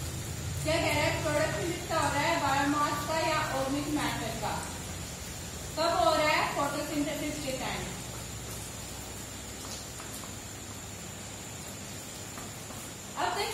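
A young woman speaks calmly nearby, as if teaching.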